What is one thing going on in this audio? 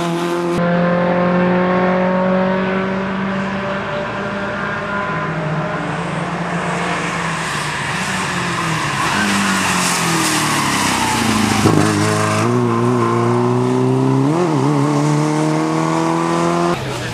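A small car engine revs hard as the car races past, shifting gears.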